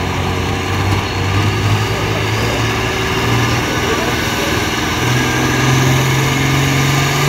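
A diesel pulling tractor roars under heavy load as it drags a sled.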